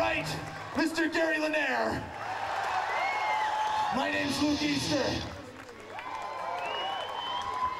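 A man sings and shouts into a microphone over a loudspeaker.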